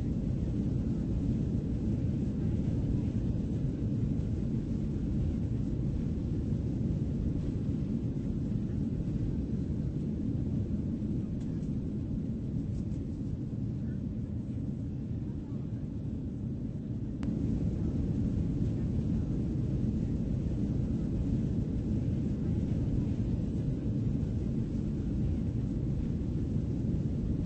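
A low, steady jet engine rumble drones inside an airliner cabin.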